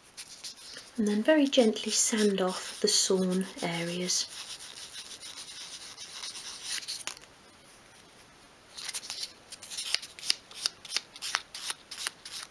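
Sandpaper rubs against a small piece of wood in short, quick strokes.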